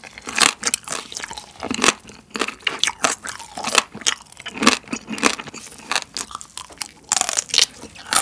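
Crab shells crack and crunch close up.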